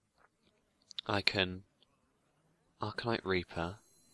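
A card snaps down with a short chime.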